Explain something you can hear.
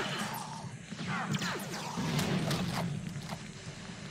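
Explosions boom loudly in a video game.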